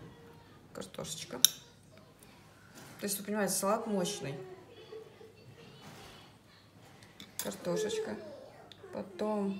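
A fork clinks and scrapes against a ceramic plate.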